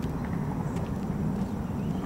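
A man's footsteps scuff on pavement as he walks away.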